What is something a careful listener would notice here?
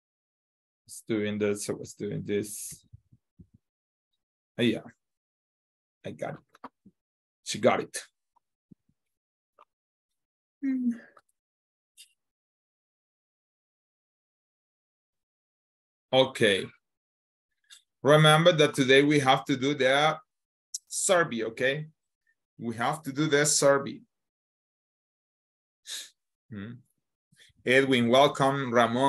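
A man speaks with animation through an online call, in bursts with pauses.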